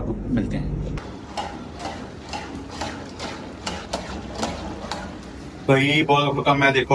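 A spatula scrapes and clinks against a pan.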